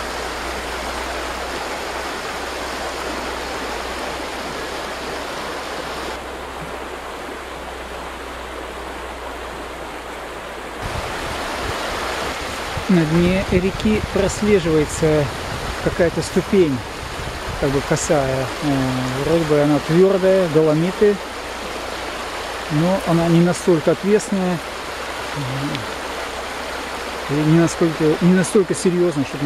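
A stream rushes and splashes over stones close by.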